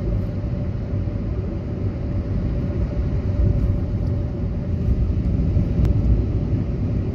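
A car drives steadily along a highway with a low, constant road rumble.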